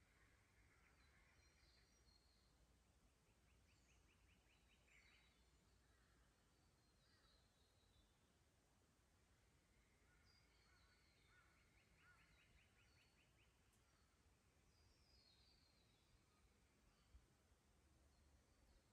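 A shallow creek trickles softly over stones.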